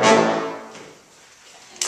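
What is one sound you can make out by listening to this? A brass ensemble holds a final chord that rings out and fades in an echoing hall.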